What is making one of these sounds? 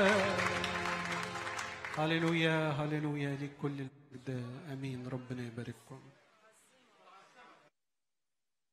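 A man sings into a microphone in an echoing hall.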